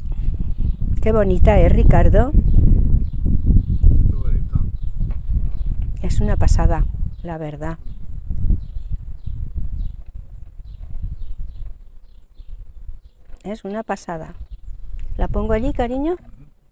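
A middle-aged woman speaks calmly close to a microphone.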